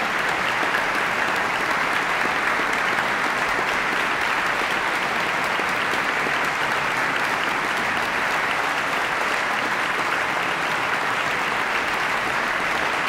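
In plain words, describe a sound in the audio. A large audience applauds loudly in a big echoing hall.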